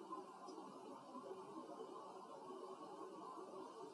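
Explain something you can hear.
Paper rustles as an envelope is handled.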